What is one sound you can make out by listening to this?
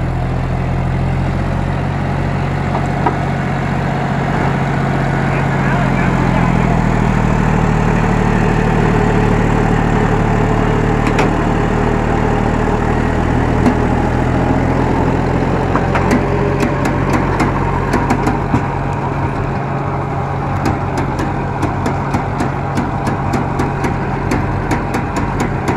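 A diesel tractor engine runs under load, pulling a seed drill.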